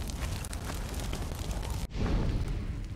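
A wood fire crackles close by.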